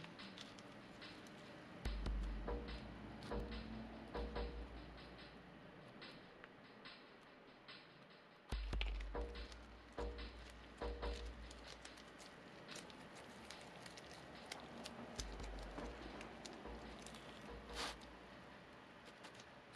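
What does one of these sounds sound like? Gloved fingers press and dab soft filler with faint rubbing taps.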